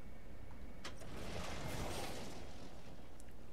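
A heavy landing thuds and whooshes.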